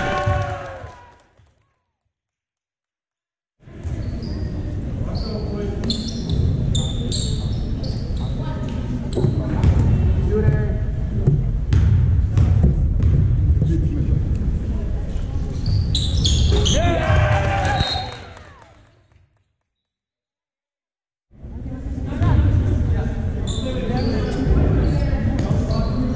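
Spectators murmur and call out in a large echoing hall.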